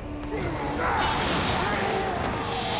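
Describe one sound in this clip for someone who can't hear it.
An explosion of sparks bursts with a crackle.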